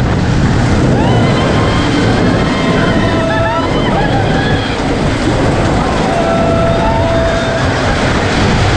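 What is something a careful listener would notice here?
Riders scream and shout in an echoing tunnel.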